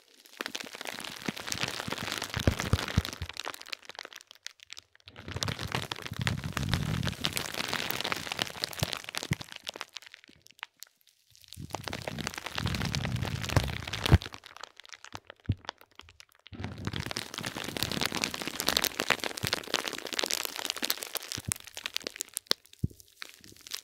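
Fingers rub and squeeze bubble wrap up close, with crisp crinkling and faint pops.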